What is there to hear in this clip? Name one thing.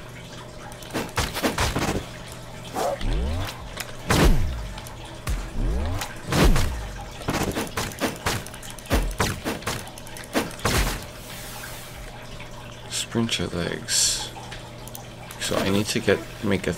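Sword slashes and magic blasts whoosh and crack in a video game fight.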